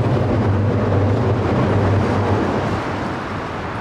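A car rumbles past close by.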